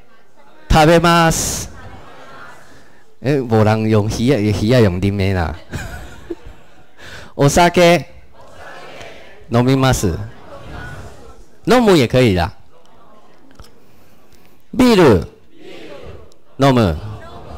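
A man speaks slowly and clearly into a microphone, pausing between words as if teaching, in an echoing room.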